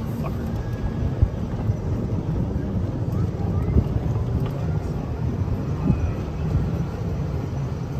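A small electric cart hums and rumbles along a dirt road.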